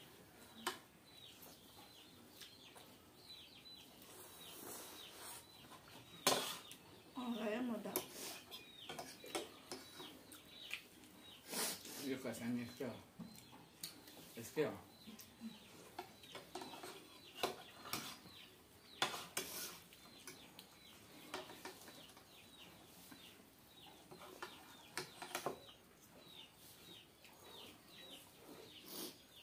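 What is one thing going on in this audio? Forks scrape and clink on plates.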